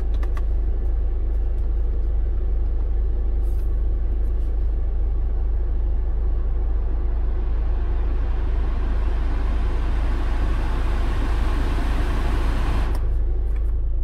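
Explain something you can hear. A car's climate-control fan blows air, rising in speed, then cuts off.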